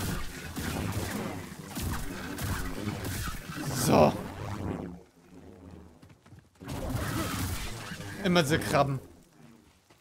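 Lightsaber blades strike with sharp crackles.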